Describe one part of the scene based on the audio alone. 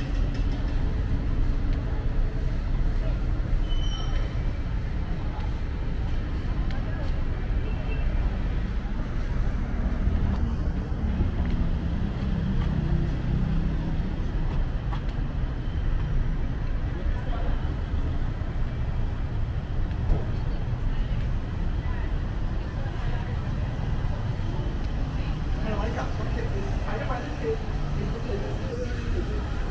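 Footsteps tap on a pavement.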